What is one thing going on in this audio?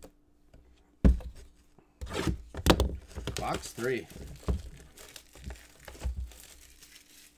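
A plastic card pack crinkles and rustles as hands open it.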